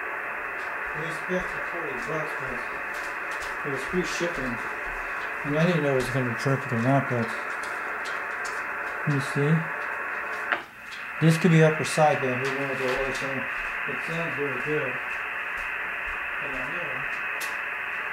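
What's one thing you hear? A man's voice talks through a crackling radio speaker, in short bursts.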